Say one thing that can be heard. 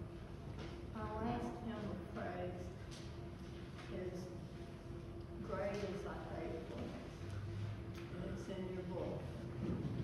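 An elderly woman speaks calmly through a microphone in an echoing hall.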